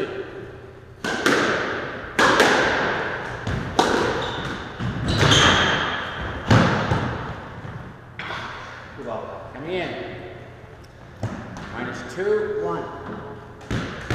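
A squash ball smacks against rackets and walls with sharp echoing cracks in a large echoing hall.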